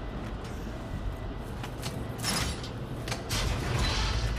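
A heavy metal lever clanks as it is pulled.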